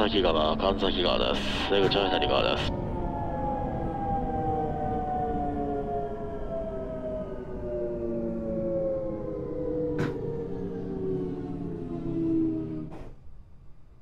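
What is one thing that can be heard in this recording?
Train wheels rumble over the rails.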